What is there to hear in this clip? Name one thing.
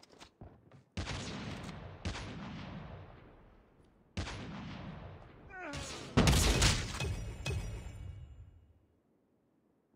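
A sniper rifle fires loud shots that ring away.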